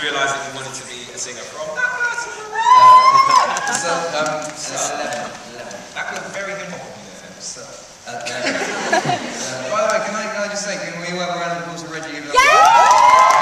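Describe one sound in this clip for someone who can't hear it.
A second young man answers, laughing, through a microphone.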